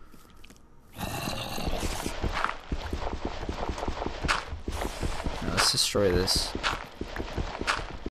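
Blocks thud softly as they are placed one after another.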